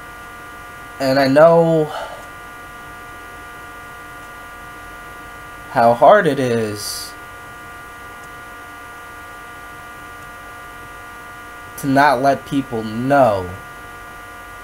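A young man speaks in short bursts close by.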